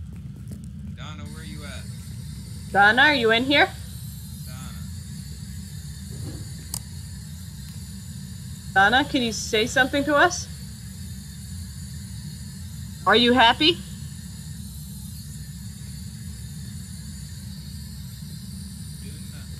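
A handheld radio hisses with steady static.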